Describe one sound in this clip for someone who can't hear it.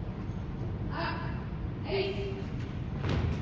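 A young man shouts drill commands in an echoing hall.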